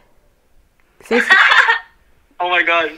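A young woman laughs over a phone call.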